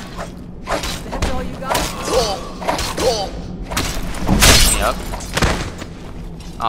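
Swords clash and strike with sharp metallic blows.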